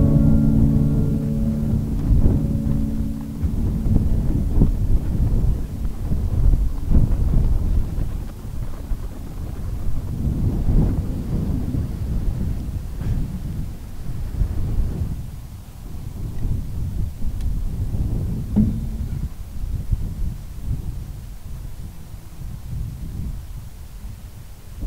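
Waves crash and wash onto a pebble beach.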